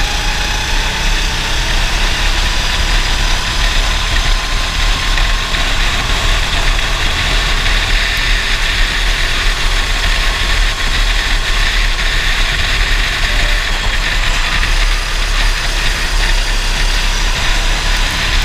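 A racing kart engine screams at full throttle, heard from on board.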